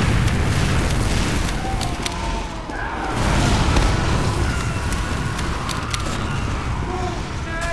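Game gunfire booms and thuds over a low rumbling roar.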